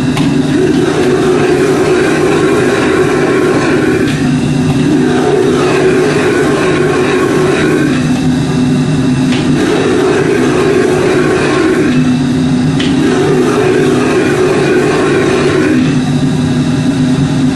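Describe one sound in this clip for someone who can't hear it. A metal ladle scrapes and clanks against a wok.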